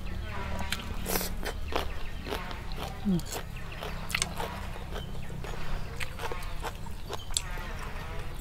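A young woman chews food noisily close by.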